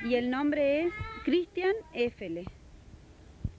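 A woman speaks briskly into a microphone close by.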